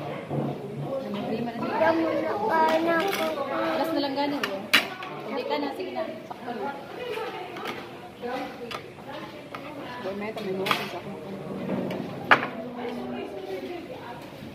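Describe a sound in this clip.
A young boy talks up close.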